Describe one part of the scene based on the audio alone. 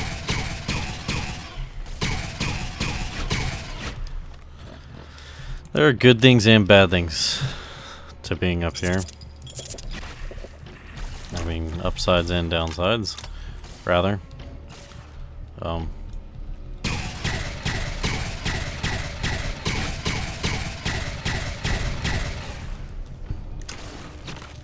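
A gun fires in rapid bursts of sharp zapping shots.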